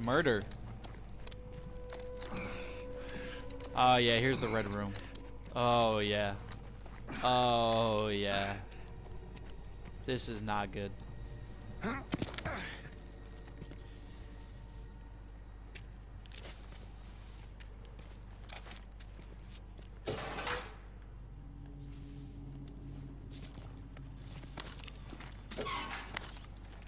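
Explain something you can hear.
Heavy footsteps thud slowly on a hard floor.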